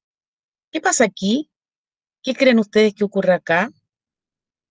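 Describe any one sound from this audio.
A woman speaks briefly and calmly through an online call.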